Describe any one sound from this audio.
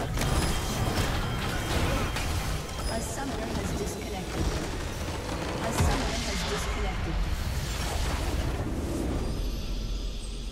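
Game spell effects and explosions crash and whoosh in a battle.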